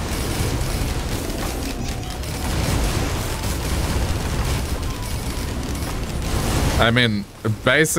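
Magical blasts and zaps crackle in a busy fight.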